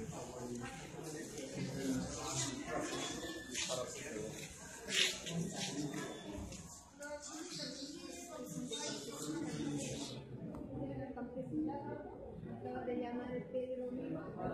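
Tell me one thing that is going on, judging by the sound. Several women talk at once nearby, some with animation.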